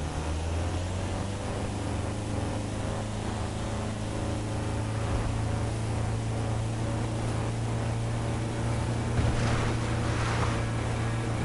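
A van engine hums steadily as it drives along a road.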